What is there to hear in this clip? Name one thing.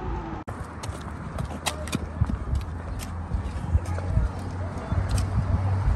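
Footsteps patter on a pavement.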